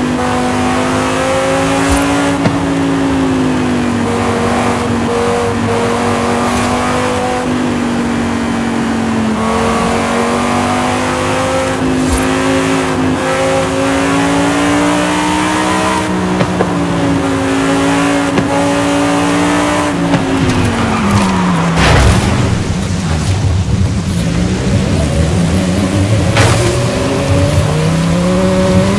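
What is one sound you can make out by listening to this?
A sports car engine roars steadily, its pitch rising and falling with the speed.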